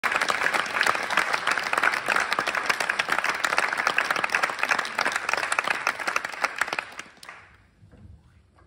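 An audience claps loudly in a large echoing hall, and the applause dies away.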